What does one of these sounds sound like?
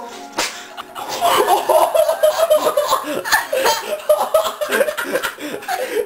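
A young man laughs loudly and uncontrollably close by.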